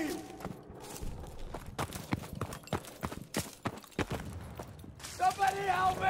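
Footsteps crunch over rubble and cobblestones.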